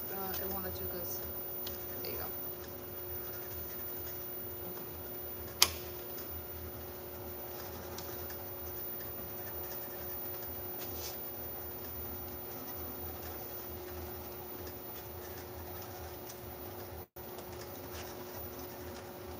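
A labelling machine hums steadily.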